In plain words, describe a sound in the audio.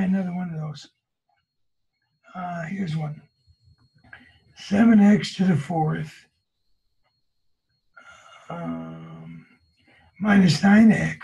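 A man explains calmly, close to a microphone, in short phrases.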